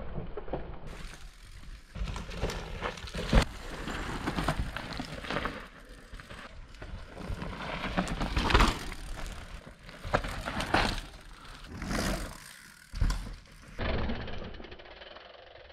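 Bicycle tyres skid and crunch over loose dirt.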